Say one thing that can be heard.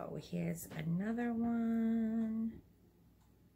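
A woman sings a long held note close by.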